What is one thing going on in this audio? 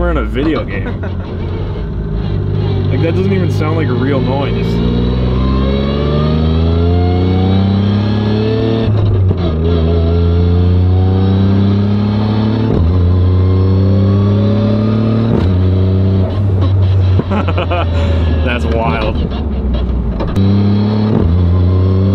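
A car engine roars loudly, revving up and shifting gears again and again.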